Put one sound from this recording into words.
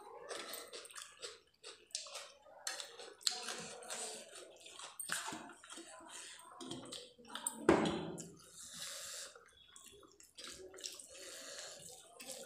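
A woman chews and smacks her lips close up.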